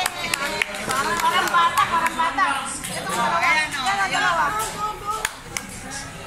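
Several women talk and cheer excitedly close by.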